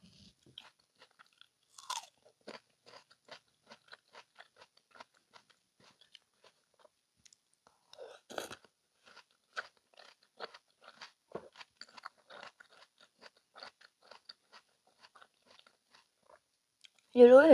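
A woman chews juicy fruit close to a microphone, with soft wet crunching and smacking.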